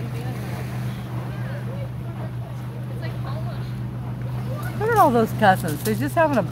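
Water splashes around children who are swimming.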